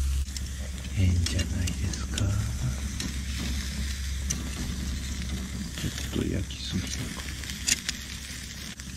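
Metal tongs clink against a grill.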